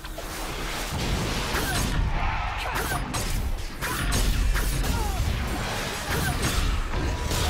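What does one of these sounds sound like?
Magic blasts burst and strike during a fight.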